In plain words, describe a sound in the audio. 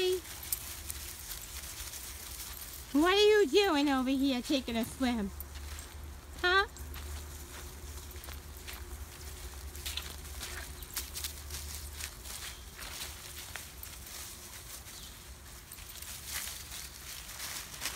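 Paws rustle through dry leaves outdoors.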